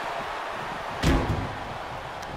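A heavy thud rings out as a wrestler hits the mat.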